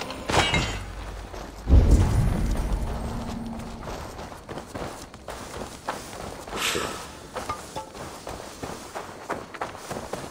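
Footsteps run quickly over soft ground.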